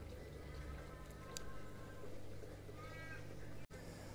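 A plug clicks into a socket.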